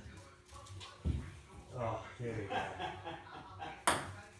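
A ping-pong ball taps on a table.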